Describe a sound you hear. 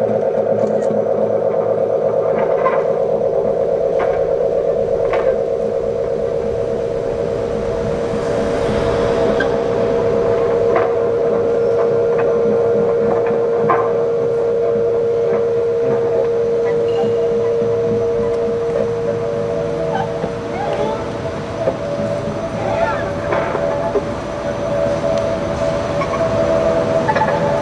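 An electric guitar plays softly.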